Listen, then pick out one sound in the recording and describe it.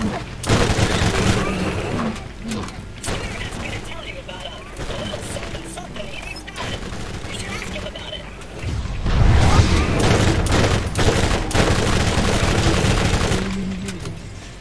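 Gunfire and explosions crackle loudly.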